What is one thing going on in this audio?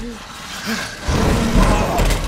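Gunfire bursts out loudly.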